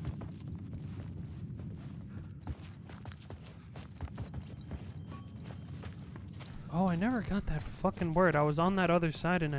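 Footsteps crunch on gritty ground.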